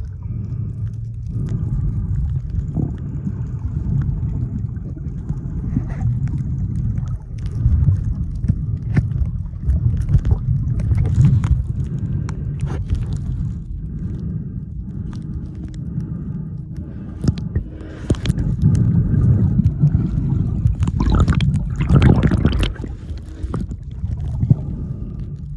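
Water rushes and bubbles in a low muffled rumble close by underwater.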